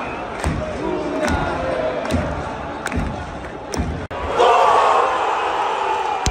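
A large crowd sings and chants loudly in an open stadium.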